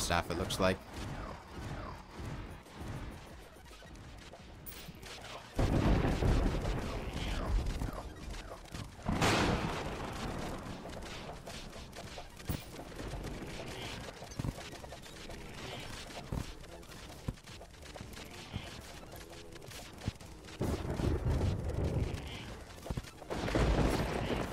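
Game weapons fire with rapid electronic blasts and hits.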